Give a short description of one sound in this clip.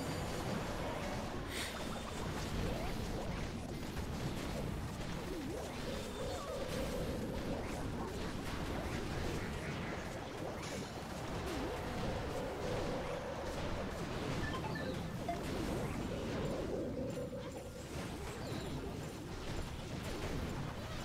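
Explosions and blasts boom repeatedly in a game battle.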